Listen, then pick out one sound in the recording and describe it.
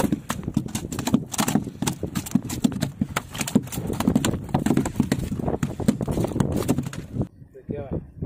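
A fish flaps and slaps against a wet boat deck.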